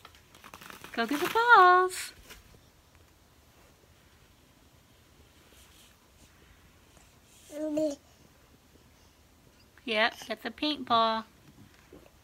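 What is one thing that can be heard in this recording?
A baby squeals and babbles up close.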